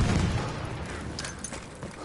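A heavy explosion booms at the start and rumbles away.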